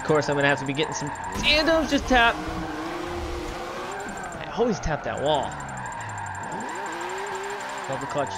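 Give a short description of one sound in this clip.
Tyres screech as a car slides through a bend.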